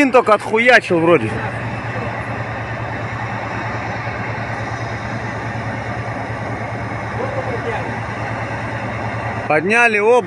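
A fire crackles and roars in the distance.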